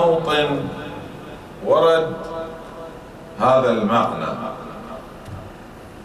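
A man speaks slowly and solemnly into a microphone, with a slight echo.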